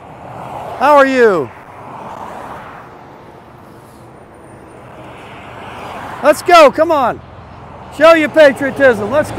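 Cars rush past on a road.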